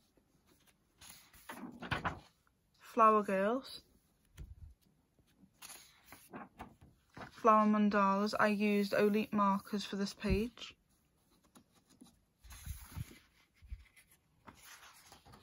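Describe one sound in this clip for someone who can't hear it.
Paper pages turn and rustle.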